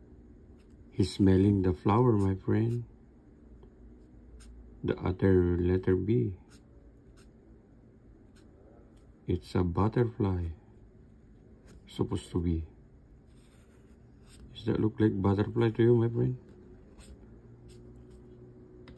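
A marker squeaks and scratches softly on paper.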